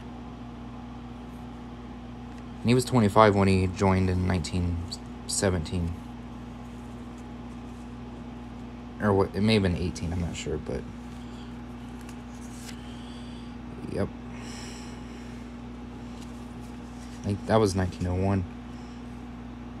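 Stiff old paper rustles and slides as cards are handled.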